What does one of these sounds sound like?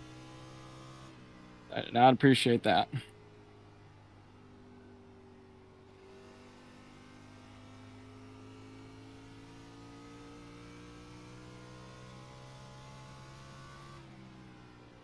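A race car engine drones steadily, its pitch slowly rising and falling.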